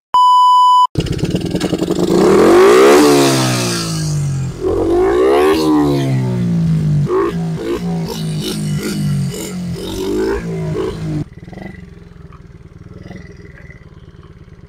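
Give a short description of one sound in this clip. A small motorbike engine revs up and down nearby, then idles.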